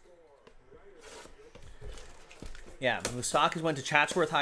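Plastic wrapping crinkles as it is torn open.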